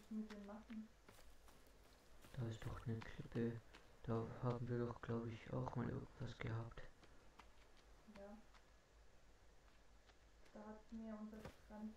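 A small campfire crackles.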